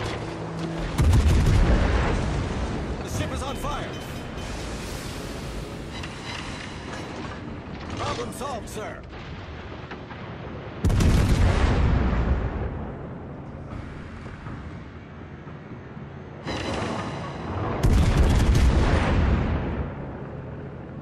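Heavy guns fire with deep, rolling booms.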